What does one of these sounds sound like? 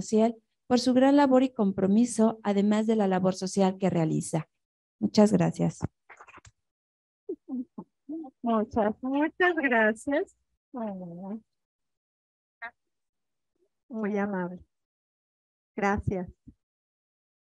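A woman speaks calmly into a microphone over a loudspeaker in a large room.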